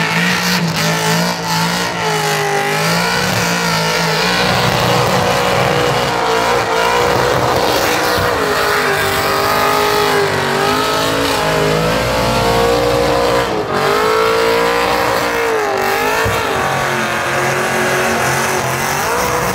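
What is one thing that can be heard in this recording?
Tyres screech as they spin on the ground.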